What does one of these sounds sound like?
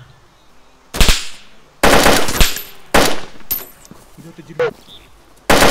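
A rifle fires several loud, sharp shots.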